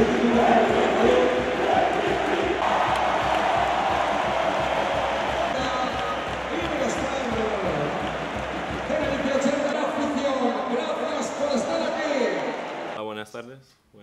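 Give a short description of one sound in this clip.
A large crowd claps and chants in rhythm.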